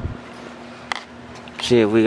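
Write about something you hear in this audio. A seat belt buckle clinks softly.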